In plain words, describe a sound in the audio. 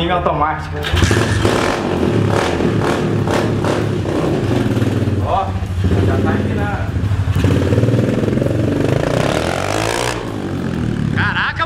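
A small motorbike engine runs and revs.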